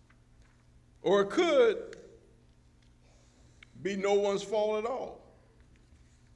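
A man speaks slowly through a microphone in a large echoing hall.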